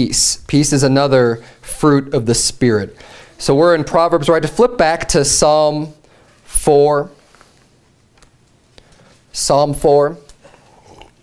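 A man speaks calmly into a microphone, reading out.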